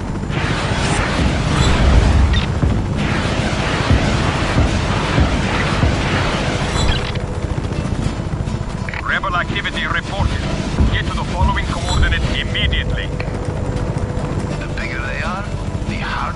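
Explosions boom and crackle below.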